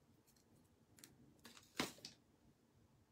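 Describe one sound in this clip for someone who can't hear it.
Paper backing peels away with a short crisp rustle.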